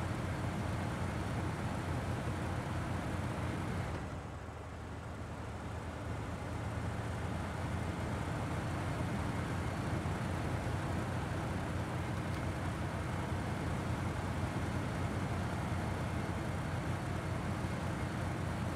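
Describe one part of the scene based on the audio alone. Truck tyres crunch over snow.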